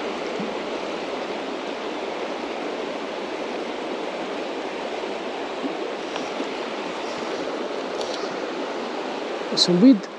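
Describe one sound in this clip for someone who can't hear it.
A river rushes and gurgles steadily close by.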